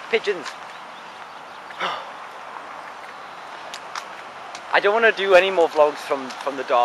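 A young man talks casually, close to the microphone.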